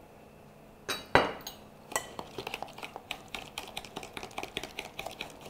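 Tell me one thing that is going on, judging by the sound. A whisk clinks against a glass jug while stirring.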